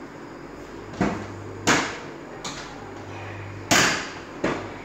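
A cabinet door opens with a click.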